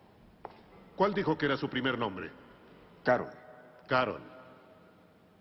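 A middle-aged man speaks calmly in a large echoing hall.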